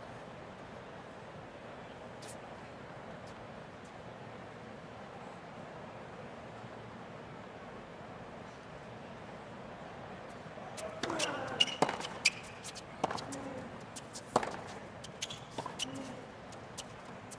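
A tennis ball bounces on a hard court.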